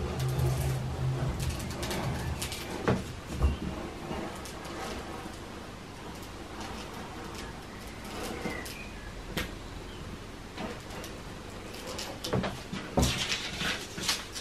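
A rotary cutter rolls and crunches through paper on a cutting mat.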